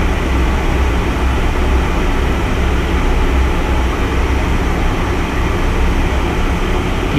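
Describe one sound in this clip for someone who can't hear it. A small plane's engine drones steadily from inside the cabin.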